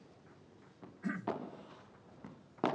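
A ball is struck with a paddle with a sharp pop.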